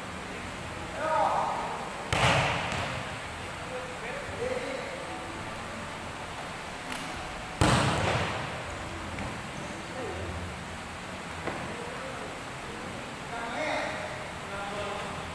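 A man calls out briefly in the echoing hall.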